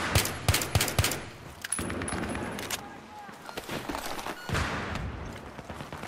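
A rifle is reloaded with a metallic clack.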